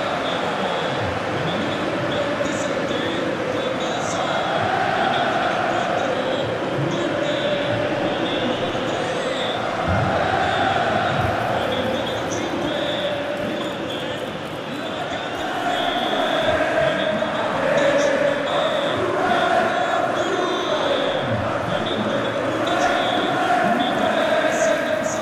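A large stadium crowd roars and chants steadily, swelling at times.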